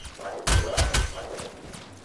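Magic blasts boom and crackle in quick bursts.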